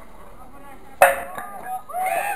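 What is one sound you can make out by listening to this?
A wooden ball strikes and knocks over a wooden pin with a sharp clack.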